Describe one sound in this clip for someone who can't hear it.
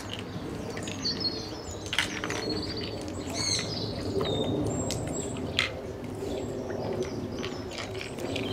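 Otters chirp and squeak in high, shrill calls.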